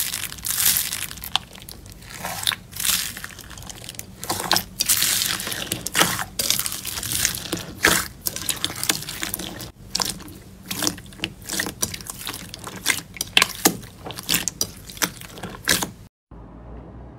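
Hands squish and crunch a slime full of foam beads, with loud crackling.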